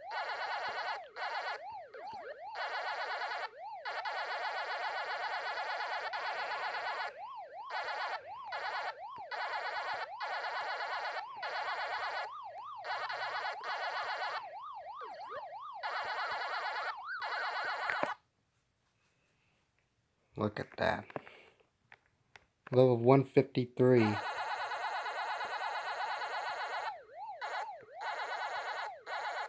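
An arcade game makes a fast, steady chomping sound.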